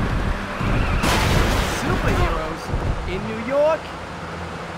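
A car crashes into objects with a loud clatter.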